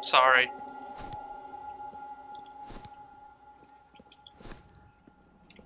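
An axe thuds into a body with wet chopping blows.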